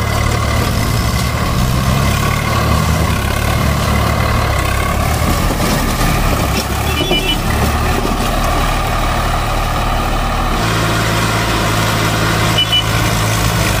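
A tractor diesel engine chugs loudly close by.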